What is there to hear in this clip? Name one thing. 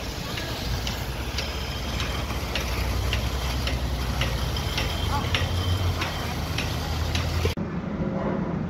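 A rake scrapes through wet concrete.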